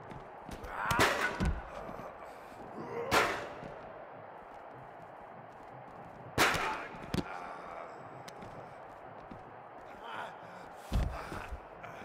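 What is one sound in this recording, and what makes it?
Heavy blows thud against a body, a few times.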